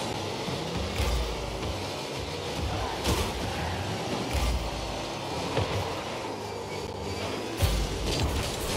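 A ball is struck with loud thumps.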